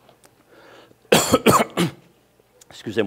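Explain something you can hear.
An older man coughs into his hand.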